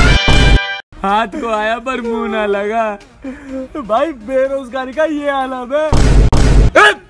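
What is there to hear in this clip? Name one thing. Another young man sobs and wails close by.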